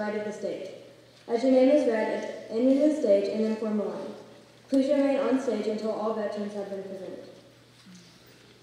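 A young woman speaks clearly into a microphone, heard through loudspeakers in a large hall.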